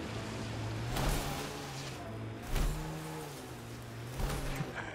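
A vehicle's suspension thumps over rocks.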